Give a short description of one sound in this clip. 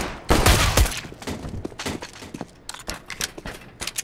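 A silenced pistol fires several quick muffled shots.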